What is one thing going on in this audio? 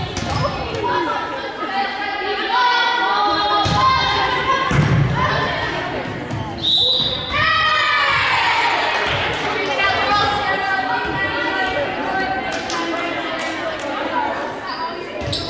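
Young women call out to each other across an echoing gym.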